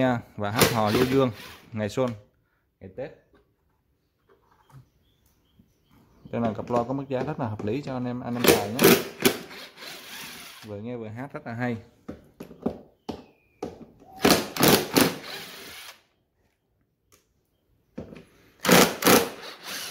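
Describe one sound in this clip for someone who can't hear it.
An electric screwdriver whirs in short bursts.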